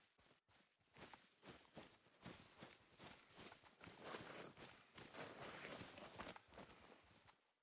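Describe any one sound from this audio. Footsteps rustle softly through tall grass.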